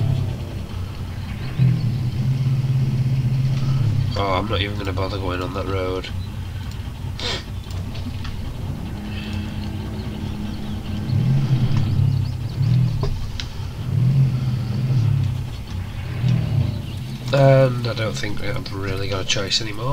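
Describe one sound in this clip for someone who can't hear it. Water splashes around a truck's wheels.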